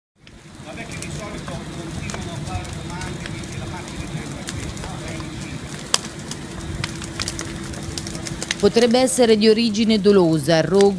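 A fire roars and crackles loudly.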